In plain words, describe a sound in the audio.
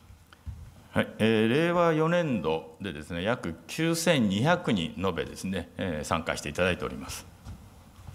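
A middle-aged man speaks calmly and formally into a microphone.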